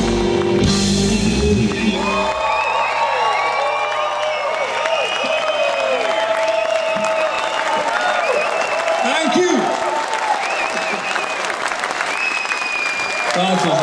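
A rock band plays loudly live through a big sound system.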